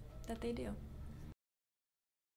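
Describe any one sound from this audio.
A woman speaks quietly close to a microphone.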